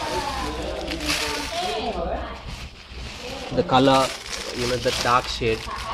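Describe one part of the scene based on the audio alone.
Dry chillies rustle and crackle as a hand scoops them up.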